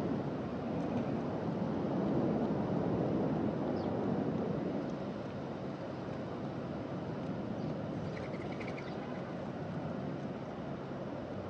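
Doves peck at seeds on pavement with soft taps.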